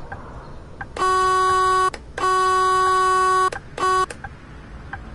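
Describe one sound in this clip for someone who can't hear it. A bus horn honks loudly in several blasts.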